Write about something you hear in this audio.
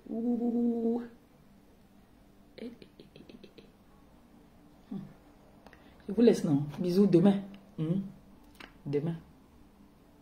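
A woman speaks close by, calmly and with pauses.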